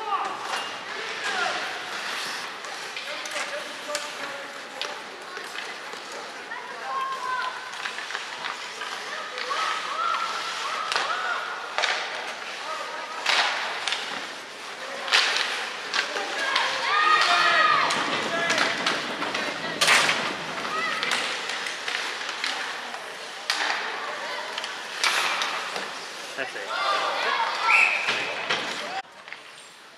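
Skates scrape and hiss across the ice in a large echoing arena.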